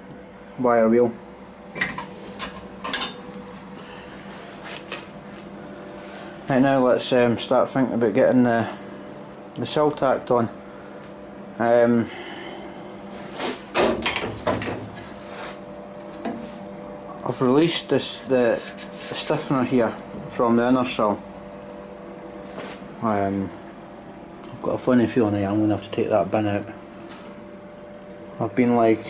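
A man speaks calmly close by, explaining with pauses.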